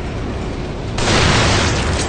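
A rifle shot cracks.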